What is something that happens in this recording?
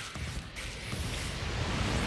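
A car explodes with a loud boom.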